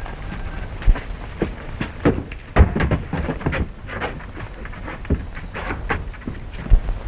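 Men scuffle with heavy thumps and knocks against a wall.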